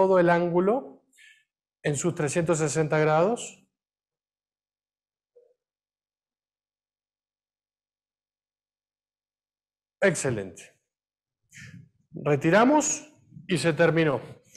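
A man speaks calmly in a room, with pauses.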